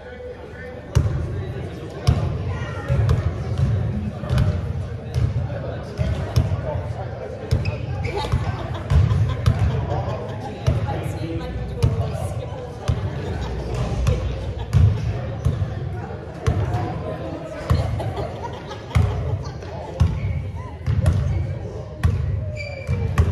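A basketball bounces repeatedly on a hard floor in a large echoing hall.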